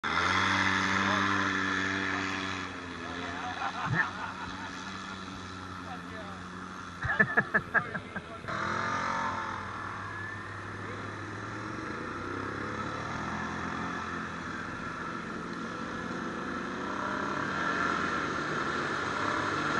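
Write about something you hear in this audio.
An off-road vehicle's engine rumbles and revs nearby.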